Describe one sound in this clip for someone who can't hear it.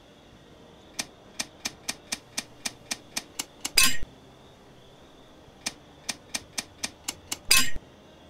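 A combination dial clicks in quick ticks as it turns.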